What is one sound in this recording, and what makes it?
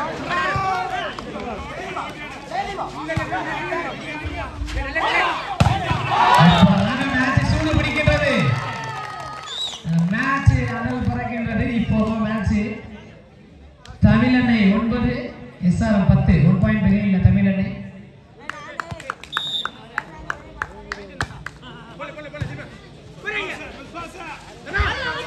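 Young men shout and call out loudly outdoors.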